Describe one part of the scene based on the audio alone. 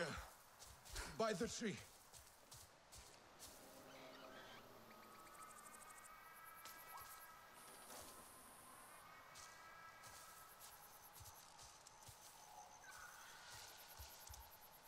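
Footsteps rustle through dense leafy plants.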